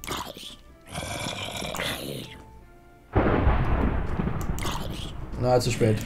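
A zombie groans nearby.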